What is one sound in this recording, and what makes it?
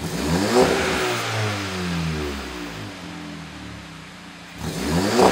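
A car engine revs up through its exhaust and then drops back to a low idle, revving again at the end.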